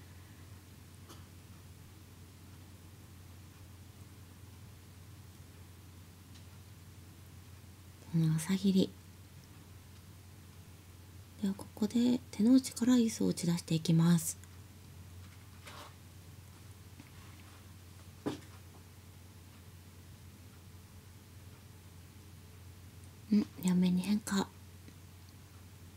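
Mahjong tiles click sharply onto a table.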